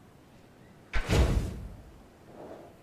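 A heavy thud sounds as a gate is set in place.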